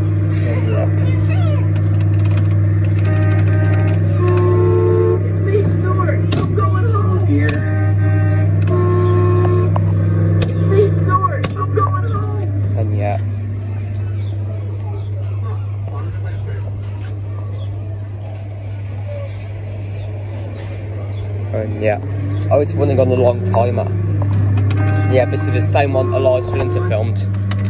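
A kiddie ride plays a tinny electronic tune through a small loudspeaker.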